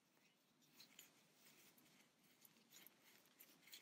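Soft stuffing rustles faintly as fingers push it into a small knitted piece.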